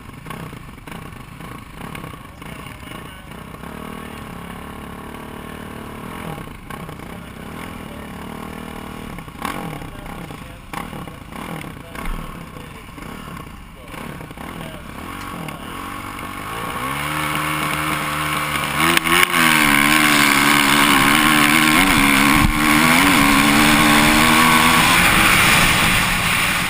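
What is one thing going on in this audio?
A dirt bike engine idles and revs close by, then roars loudly as the bike speeds away.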